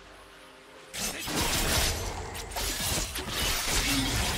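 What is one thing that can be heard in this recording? Magic blasts and hits clash rapidly in a fight.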